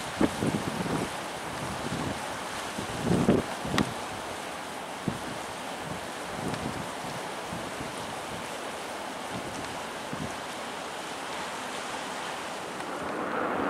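A river rushes steadily outdoors.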